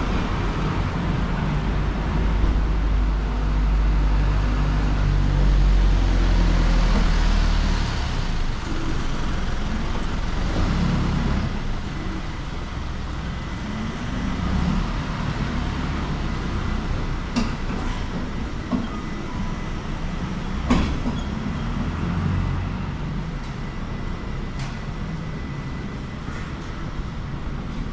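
Distant city traffic hums steadily outdoors.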